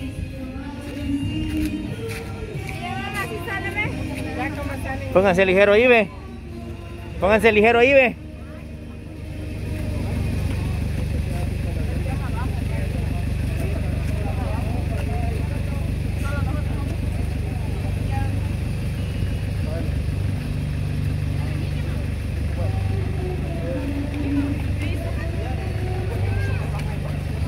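Men and women talk casually nearby outdoors.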